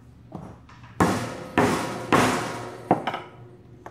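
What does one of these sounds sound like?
A mallet strikes a metal punch with sharp ringing blows.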